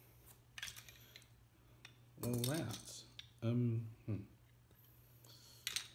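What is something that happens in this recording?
Small plastic parts click and rattle in hands.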